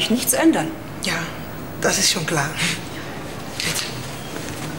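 A young woman speaks warmly nearby.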